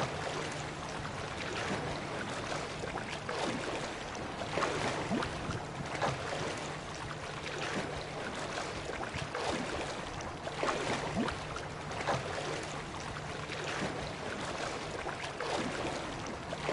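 Arms splash through water in repeated swimming strokes.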